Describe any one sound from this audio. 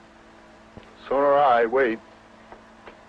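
A young man answers briefly over a radio microphone.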